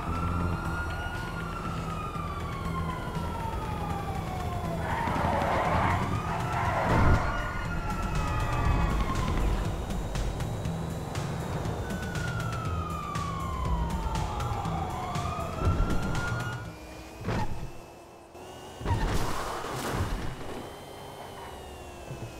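An electric car whines as it speeds along a road.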